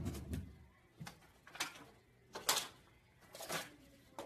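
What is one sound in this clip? Paper rips and tears off a wall.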